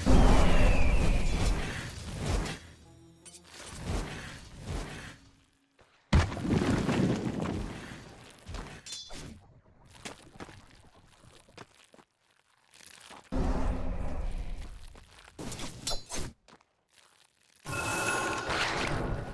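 Magic spells whoosh and weapons clash in a fantasy battle.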